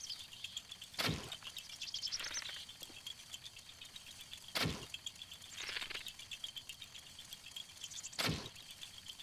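A bowstring snaps sharply as arrows are loosed, three times.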